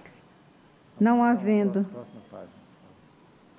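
A woman speaks calmly over a microphone.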